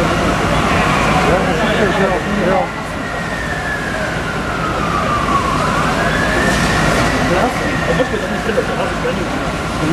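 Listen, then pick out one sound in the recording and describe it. A siren wails nearby, rising and falling slowly.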